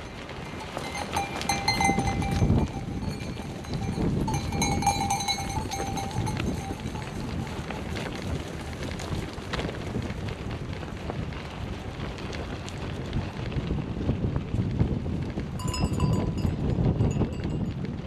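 Sheep bleat close by.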